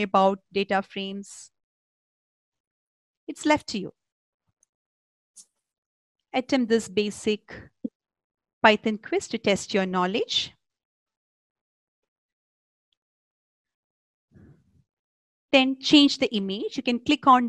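A young woman talks calmly into a microphone, in short bursts with pauses.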